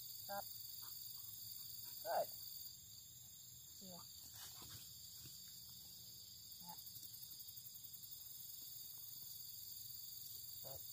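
A woman gives short, clear commands to a dog.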